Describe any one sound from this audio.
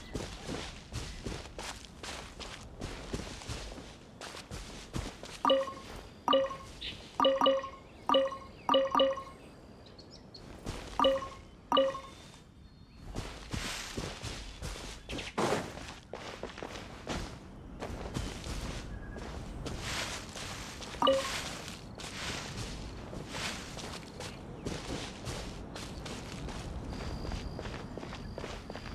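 Quick footsteps patter over grass and ground.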